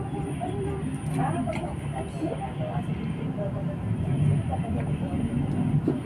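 A woman gulps a drink.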